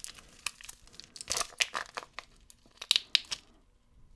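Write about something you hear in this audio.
A plastic lid clicks open.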